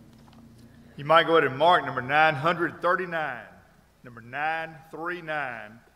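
A middle-aged man speaks steadily through a microphone in a large room.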